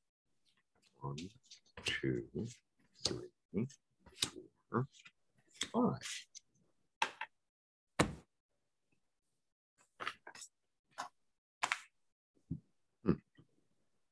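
Small stones click on a cloth as a hand places them.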